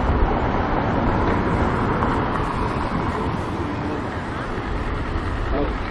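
A car drives past on a wet road.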